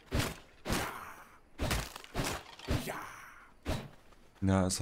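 Sharp blows and slashing hits land in quick succession.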